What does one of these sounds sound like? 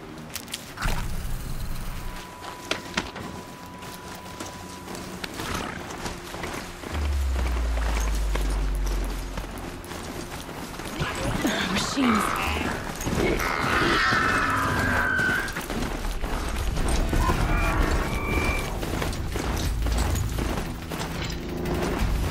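Mechanical hooves clatter steadily over rough ground at a gallop.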